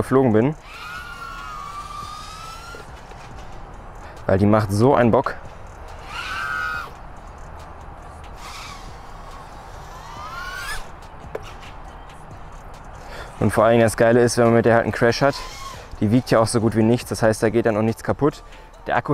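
A small drone's motors whine loudly, rising and falling in pitch as the throttle changes.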